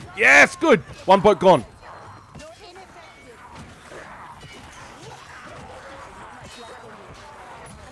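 Metal weapons clash and thud against bodies in a fight.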